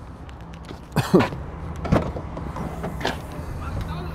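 A car's tailgate unlatches and swings open.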